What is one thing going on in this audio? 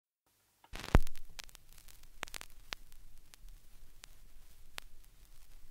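A vinyl record crackles with scattered pops and clicks.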